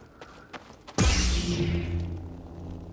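A lightsaber ignites with a sharp burst.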